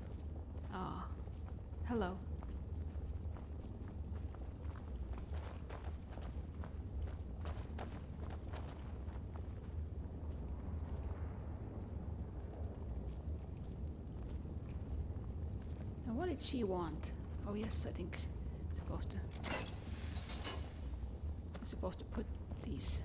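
A torch flame crackles and hisses close by.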